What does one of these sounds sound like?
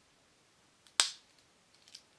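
A pocket knife blade snaps shut with a sharp click.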